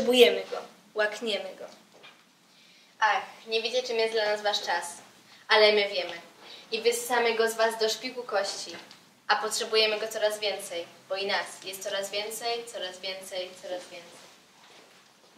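Two young women speak in turn with animation.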